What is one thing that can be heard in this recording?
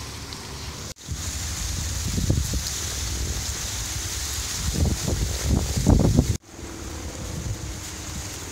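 Dry corn leaves rustle in gusts of wind outdoors.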